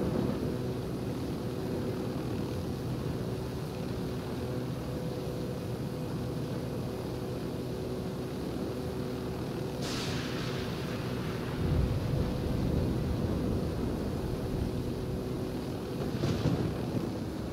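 A helicopter drones in flight with a whirring rotor.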